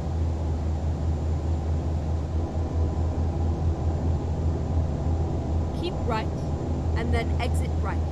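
A truck engine drones steadily at low pitch.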